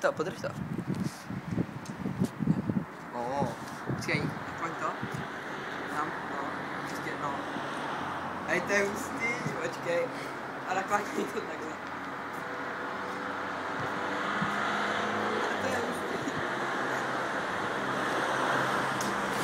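A teenage boy talks close by, outdoors.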